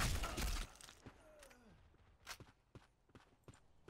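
A rifle is reloaded with metallic clicks and clacks.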